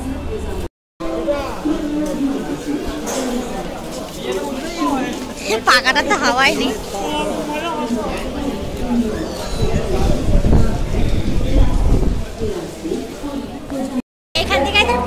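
A crowd murmurs and chatters in a busy, echoing hall.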